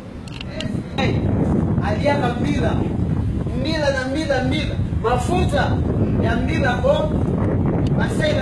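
A man speaks loudly nearby.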